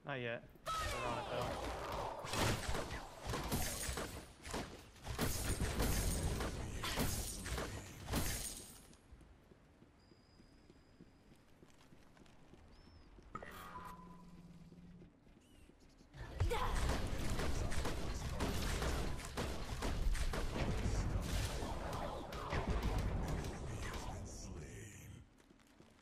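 Game blasts and impacts crash in rapid bursts.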